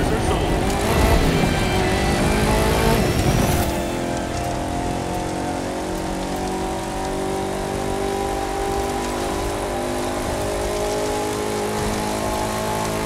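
An off-road buggy engine roars steadily as it speeds up.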